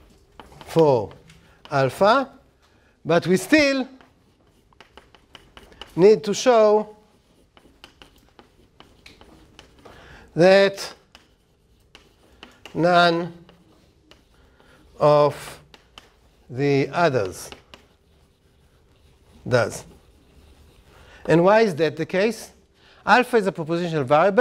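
An older man speaks slowly in short phrases with long pauses, in an echoing room.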